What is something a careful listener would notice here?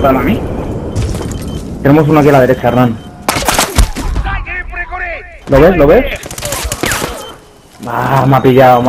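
Rapid gunshots crack and rattle.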